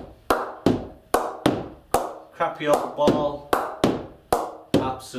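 A ball knocks repeatedly against a wooden bat in quick, even taps.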